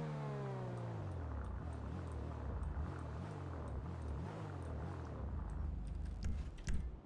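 A car engine idles with a low rumble.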